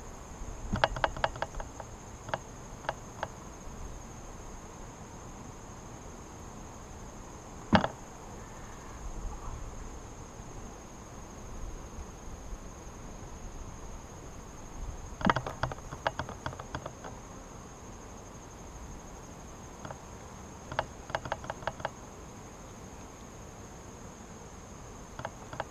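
Wooden hive frames knock and scrape as a beekeeper lifts them.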